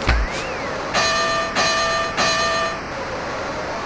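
A boxing bell rings three times.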